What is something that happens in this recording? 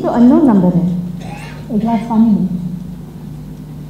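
A young woman speaks with feeling on a stage, heard through a loudspeaker in a large room.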